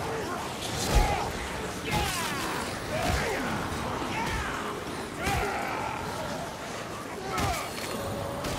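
A hammer strikes with heavy thuds.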